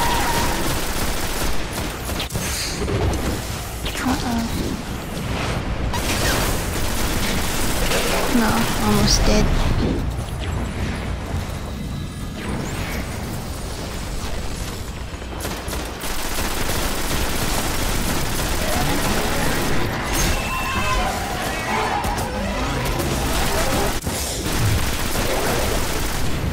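Explosions boom with fiery blasts.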